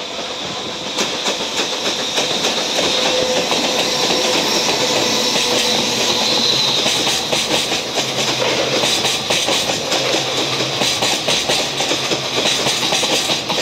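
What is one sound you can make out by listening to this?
Wheels of freight flat wagons loaded with rails clatter over rail joints.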